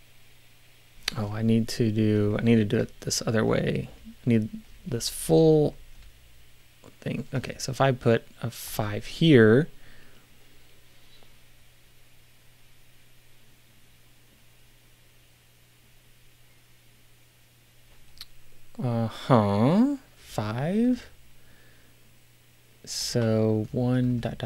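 A middle-aged man speaks calmly and close to a microphone, in bursts with pauses.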